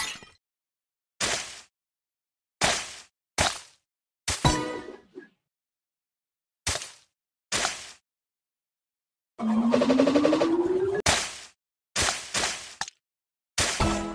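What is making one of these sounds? Short bright sound effects burst as tiles pop and clear.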